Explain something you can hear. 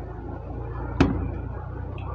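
A glass knocks sharply on a table.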